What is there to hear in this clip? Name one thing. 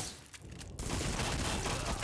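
A submachine gun fires.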